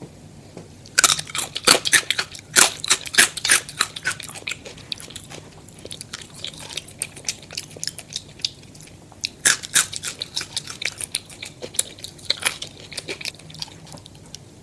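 A young woman crunches crispy fries close to a microphone.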